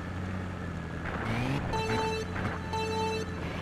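A kart engine revs up sharply.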